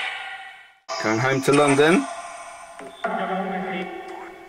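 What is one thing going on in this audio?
A small electronic device plays short, echoing bursts of garbled sound separated by fading silence.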